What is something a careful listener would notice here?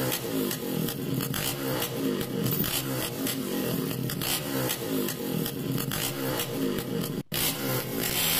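A motorbike engine hums as it rides along.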